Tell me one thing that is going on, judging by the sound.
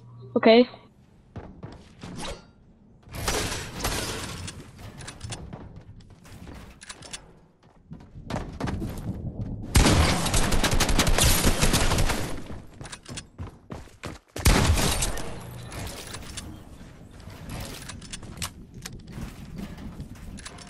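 Building pieces snap into place with rapid clattering.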